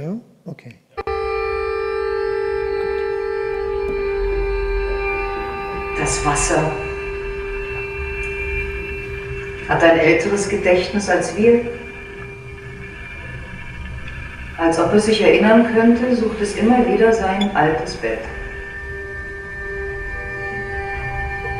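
Electronic music plays steady, held droning tones.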